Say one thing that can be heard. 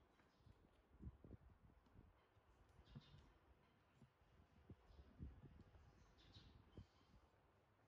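A plastic toy knocks and bumps against a wooden table.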